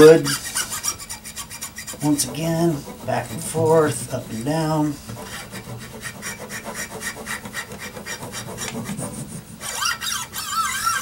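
A cloth rubs against guitar strings, making them squeak and faintly ring.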